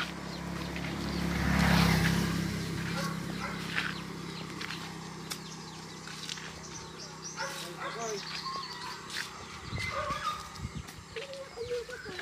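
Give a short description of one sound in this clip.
A walking stick taps on the ground.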